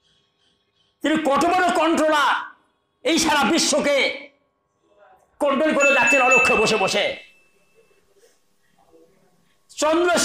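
An elderly man preaches forcefully into a close microphone, in bursts with pauses.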